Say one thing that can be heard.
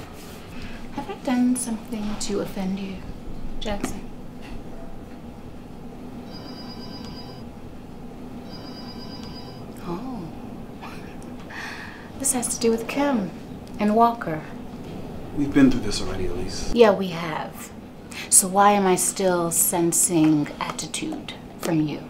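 A young woman speaks calmly and with feeling, close by.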